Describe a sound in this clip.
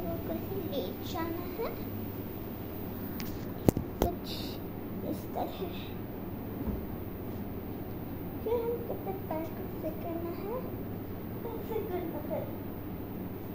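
A young girl speaks softly close by.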